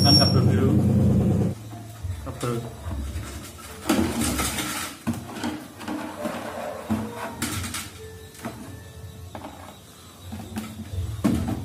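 A plastic container creaks and rustles as it is handled.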